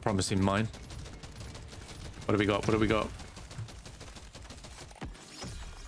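Small guns fire in quick bursts.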